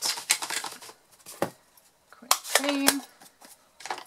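A plastic case clicks and taps on a table.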